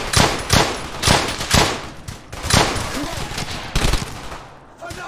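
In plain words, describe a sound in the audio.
Gunshots crack loudly, one after another.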